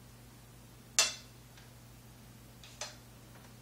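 A wooden brush is set down on a table with a light knock.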